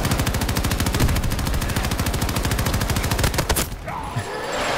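A machine gun fires rapid, steady bursts close by.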